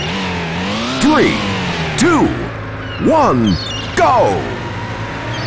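Car tyres screech briefly.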